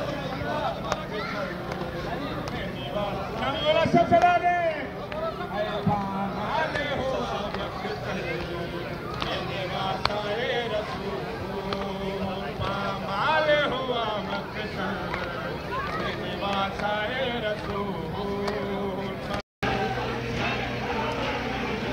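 A crowd of men murmurs and talks nearby outdoors.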